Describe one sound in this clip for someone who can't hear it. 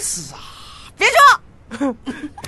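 A young man talks with animation.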